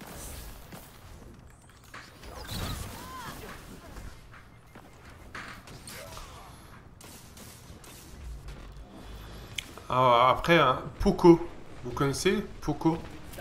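Gunshots and explosions from a game crackle and boom.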